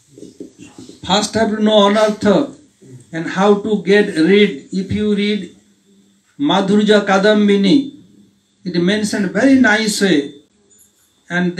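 An elderly man sings into a microphone, heard through a loudspeaker.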